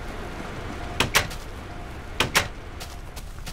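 A wooden door creaks open and thuds shut.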